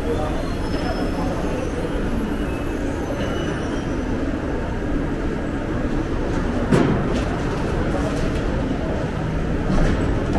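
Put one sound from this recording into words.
A subway train rolls slowly into the station with a low rumble.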